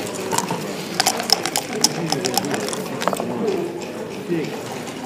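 Dice rattle and tumble across a board.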